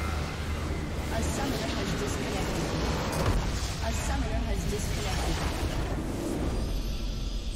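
A structure explodes with a deep crashing boom.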